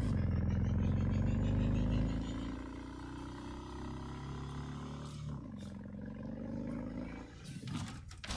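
A motorcycle engine hums steadily and shifts in pitch.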